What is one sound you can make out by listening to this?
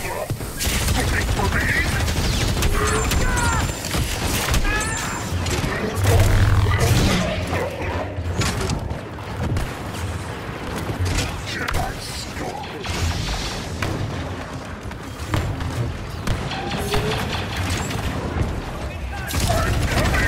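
Lightsabers hum and swing with sharp buzzing whooshes.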